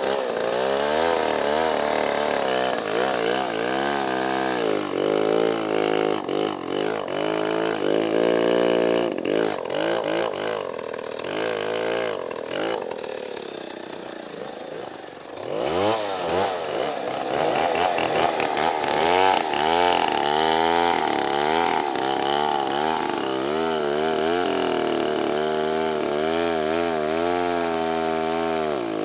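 A chainsaw roars close by, revving up and down as it cuts into wood.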